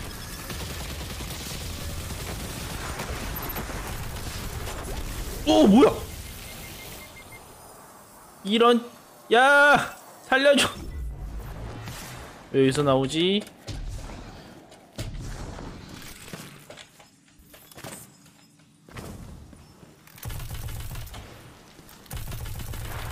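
Gunfire from a game weapon rattles in rapid bursts.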